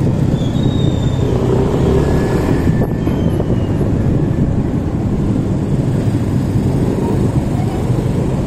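A motorbike engine idles and rumbles close by.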